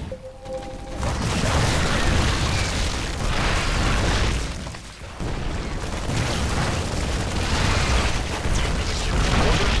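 Rapid gunfire rattles and explosions boom in a heavy battle.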